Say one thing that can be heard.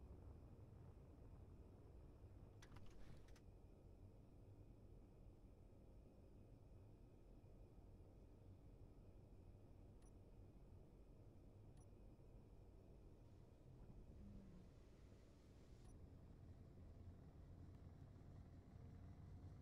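A spacecraft's engines hum low and steady.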